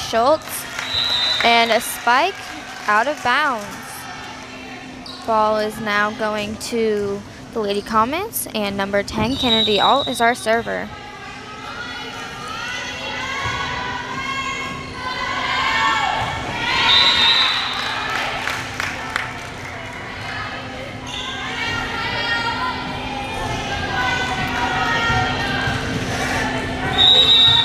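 A referee's whistle blows in short, sharp blasts.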